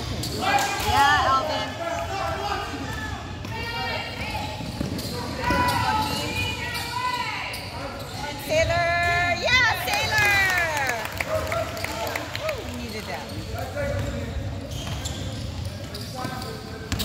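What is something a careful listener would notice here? Sneakers squeak sharply on a wooden court, echoing in a large hall.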